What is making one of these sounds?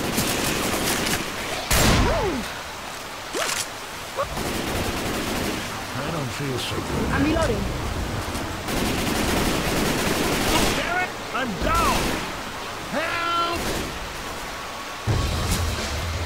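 A shotgun fires in loud blasts.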